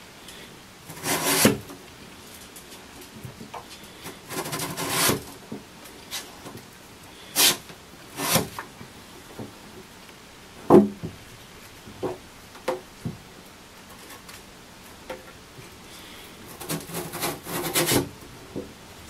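Sandpaper scrapes in short bursts against wood.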